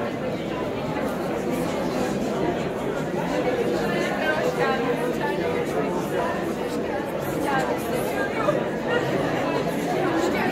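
A crowd of men and women chatters all around.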